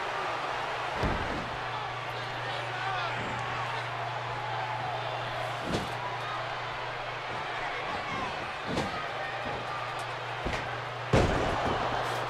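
Bodies slam down heavily onto a wrestling mat with dull thuds.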